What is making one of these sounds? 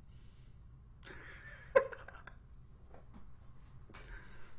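A young man laughs loudly close to a microphone.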